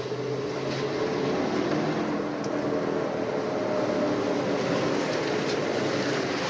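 Car tyres hiss on a wet road as a car drives closer.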